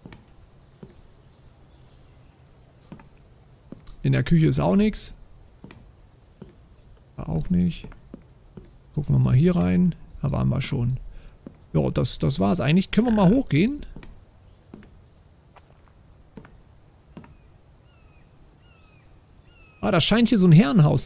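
Footsteps thud softly on wooden floorboards.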